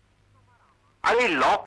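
A man speaks loudly.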